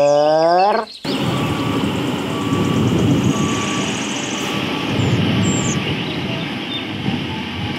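A road roller's diesel engine rumbles steadily outdoors.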